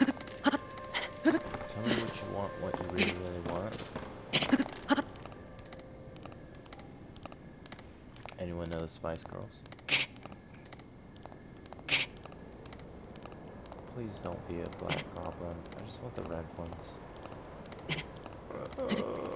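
A game character grunts with effort while climbing.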